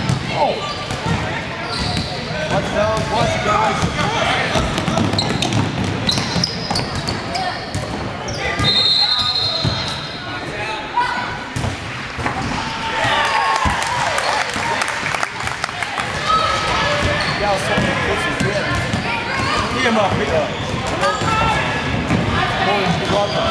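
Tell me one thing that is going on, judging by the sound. Sneakers squeak sharply on a wooden floor in an echoing gym.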